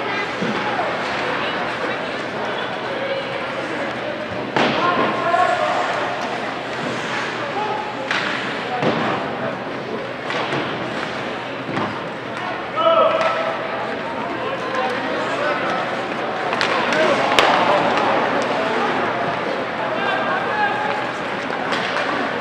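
A crowd of spectators shouts and cheers in an echoing rink.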